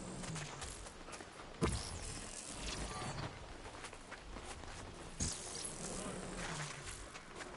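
Magical energy blasts crackle and boom in bursts.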